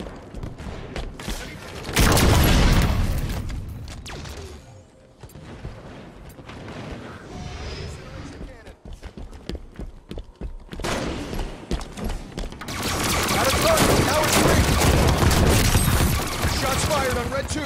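Rapid gunshots crack.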